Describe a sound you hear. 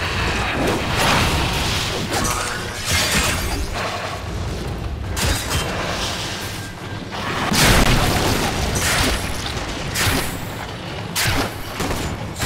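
Metal blades swing and clash in quick, heavy bursts.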